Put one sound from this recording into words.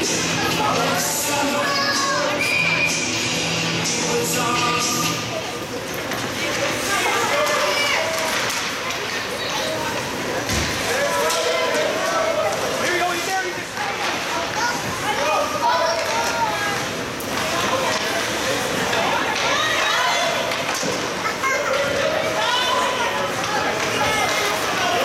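Spectators nearby talk and call out in an echoing rink.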